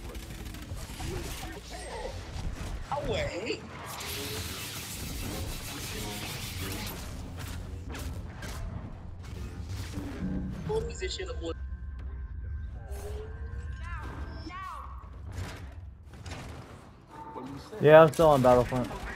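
Lightsaber blades hum and whoosh as they swing.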